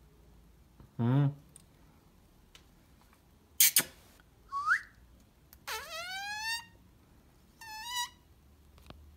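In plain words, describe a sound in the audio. A parrot squawks and whistles close by.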